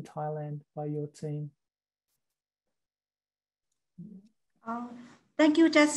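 A woman speaks steadily through an online call, with pauses.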